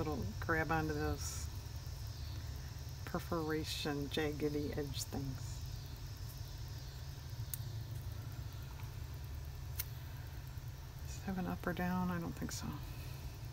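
Paper and tape rustle softly as they are handled.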